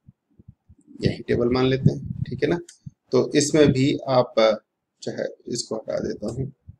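A middle-aged man speaks calmly and explains, close to a microphone.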